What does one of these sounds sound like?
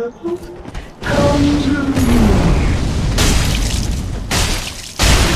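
A burst of fire roars up and crackles.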